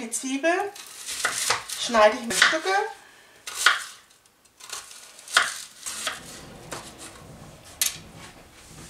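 A knife chops through an onion onto a cutting board.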